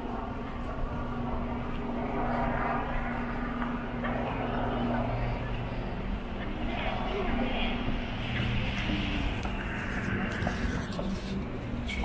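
Voices of people murmur nearby outdoors.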